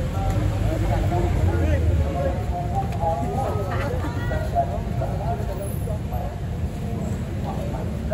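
Young men talk and call out with animation outdoors.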